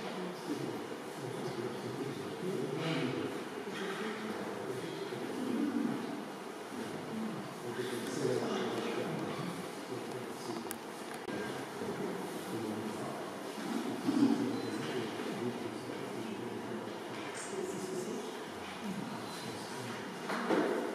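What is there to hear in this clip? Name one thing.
Adult visitors talk quietly nearby in a reverberant hall.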